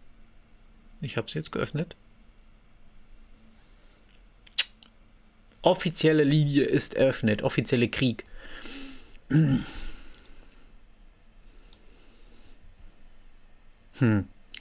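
A young man talks in short bursts.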